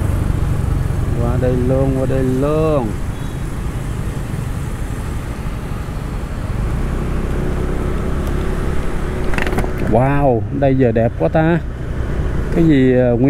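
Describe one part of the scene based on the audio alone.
A motorbike engine hums steadily close by.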